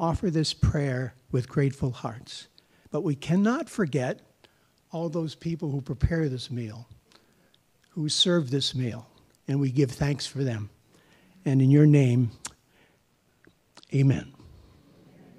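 An elderly man speaks slowly into a microphone.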